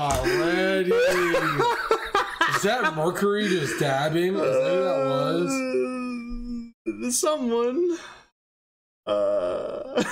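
A bearded young man talks with animation close to a microphone.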